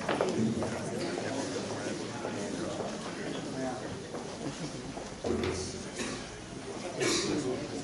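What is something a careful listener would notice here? An elderly man reads out through a microphone in a room with a slight echo.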